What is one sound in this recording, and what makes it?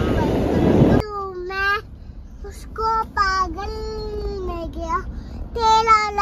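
A young girl sings in a high, drawn-out voice close by.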